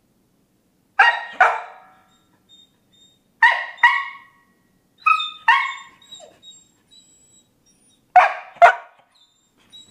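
A dog barks loudly and sharply in pairs, close by.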